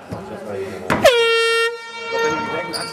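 A referee blows a long, sharp whistle.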